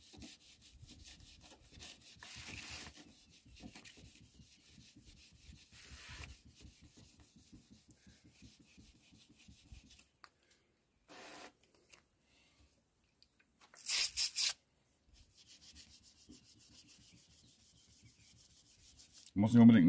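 A rubber blade rubs and scrapes softly across a wet, smooth surface.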